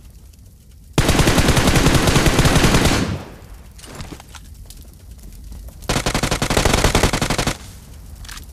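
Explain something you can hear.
Automatic gunfire rattles in fast, loud bursts.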